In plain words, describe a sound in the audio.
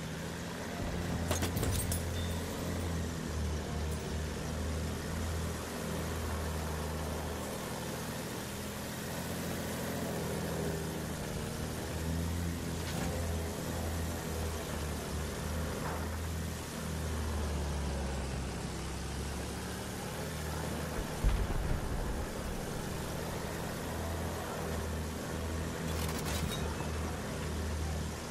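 A biplane engine drones steadily throughout.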